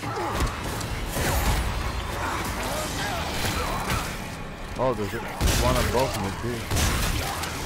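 A monster snarls and growls up close.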